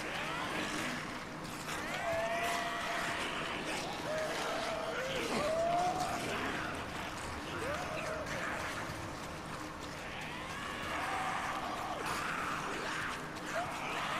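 Footsteps crunch on gravel and rocks.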